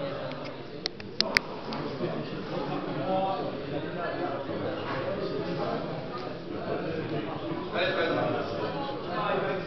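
Several men talk and call out in a large echoing room.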